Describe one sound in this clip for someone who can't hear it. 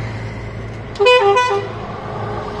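A bus horn honks twice.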